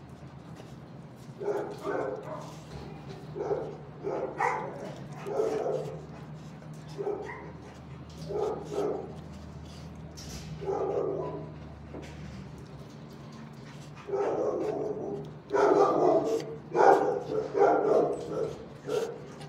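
A dog sniffs close by.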